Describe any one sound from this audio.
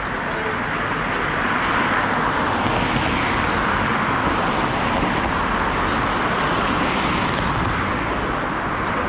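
A car drives past, its tyres hissing on asphalt.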